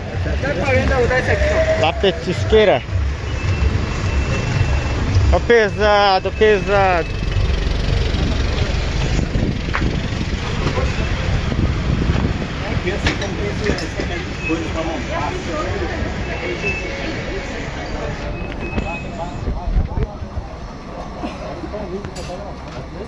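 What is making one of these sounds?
A crowd of men and women chatter on a busy street.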